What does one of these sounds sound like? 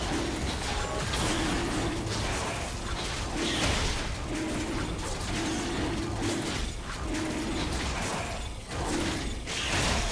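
Game sound effects of spells and blows whoosh and crackle in quick bursts.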